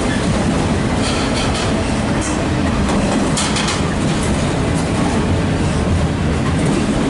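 Train wheels clank and squeal over rail joints.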